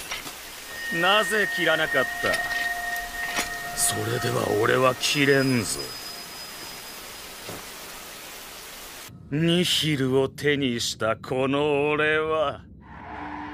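A man speaks with a slow, menacing tone, close by.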